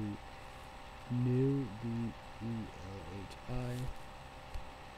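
A young man speaks quietly and slowly, close by.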